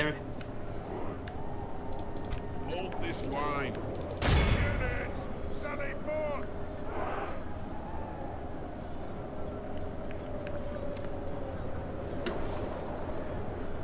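A large crowd of soldiers clatters and murmurs steadily in the distance.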